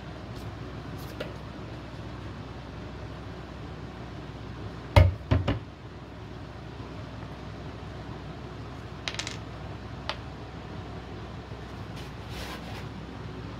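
Wooden blocks knock and clack against a wooden surface.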